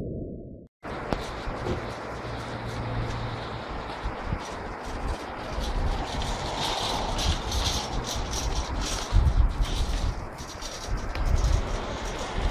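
Wind gusts rumble across the microphone outdoors.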